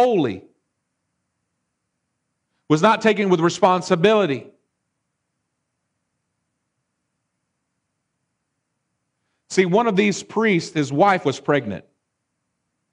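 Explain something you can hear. A man speaks with animation through a microphone, in short bursts with long pauses.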